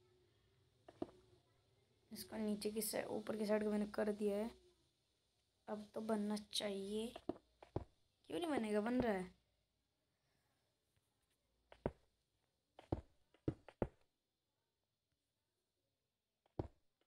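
Blocks are placed with short soft thuds.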